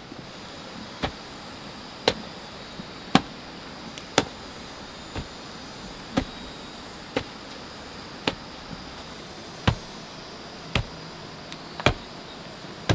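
A wooden pole thuds again and again into packed earth.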